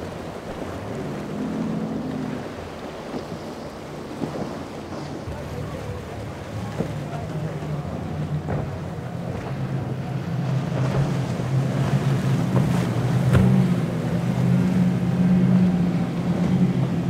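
Water splashes and hisses against a boat's hull.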